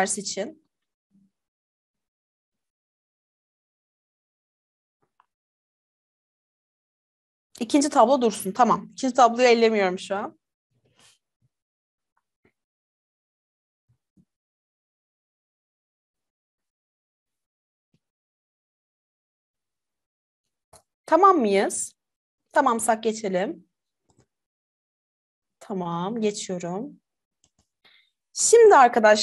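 A young woman speaks calmly into a microphone, in short bursts with long pauses.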